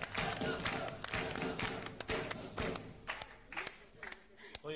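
A small crowd applauds and cheers loudly.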